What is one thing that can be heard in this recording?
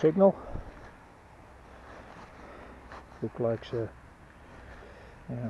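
Gloved hands rub and crumble damp soil close by.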